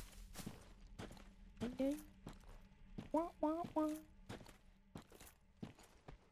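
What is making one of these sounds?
Armoured footsteps thud steadily on the ground.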